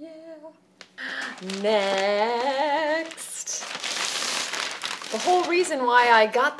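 A plastic bag rustles and crinkles loudly.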